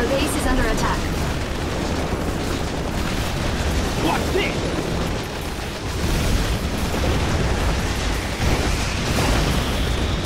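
Gunfire rattles in a battle.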